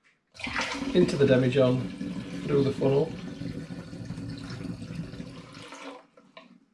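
Liquid pours from a pot into a jug.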